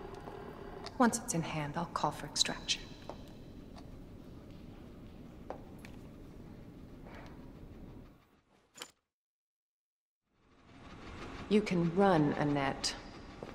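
A young woman speaks calmly and softly, close by.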